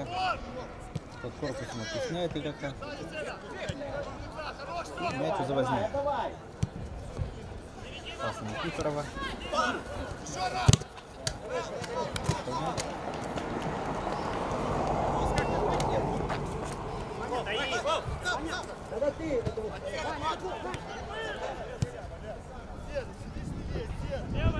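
Men shout and call to each other across an open field outdoors.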